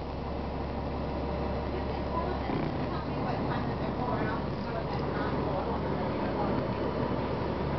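A bus engine hums and rumbles steadily while driving.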